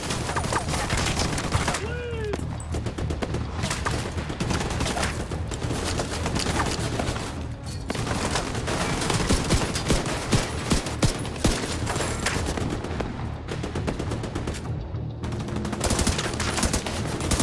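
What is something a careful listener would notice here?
Rifles fire in rapid bursts of sharp cracks.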